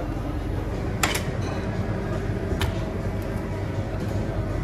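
A cleaver chops meat on a board with sharp knocks.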